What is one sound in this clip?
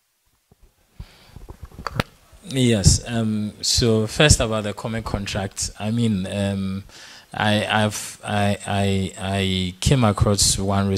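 A man speaks into a microphone, answering with a deep, steady voice.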